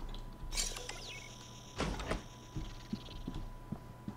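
A sliding door rumbles open.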